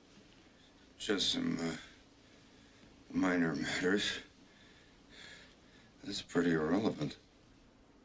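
A man speaks quietly and tensely.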